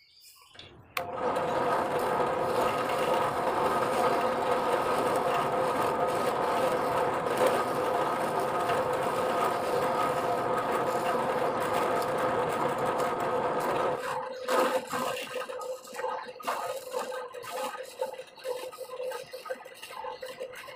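A drill press motor hums steadily.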